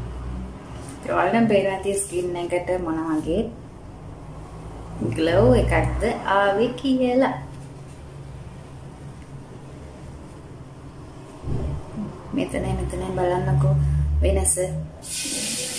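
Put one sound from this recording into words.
A young woman talks close to the microphone, in a cheerful, chatty way.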